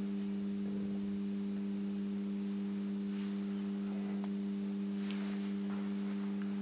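Electric lamps give off a steady low hum.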